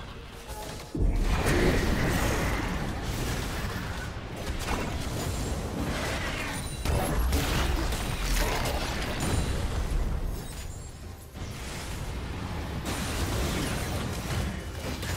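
Fantasy battle effects crash and whoosh as spells and blows land.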